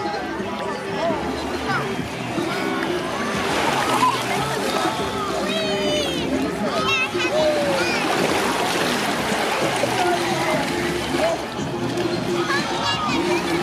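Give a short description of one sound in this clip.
Shallow water laps and splashes gently.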